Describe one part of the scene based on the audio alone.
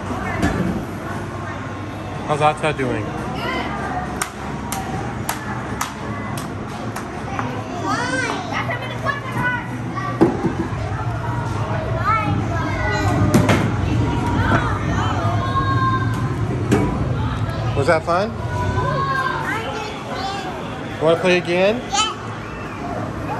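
Arcade machines play electronic jingles and beeps all around.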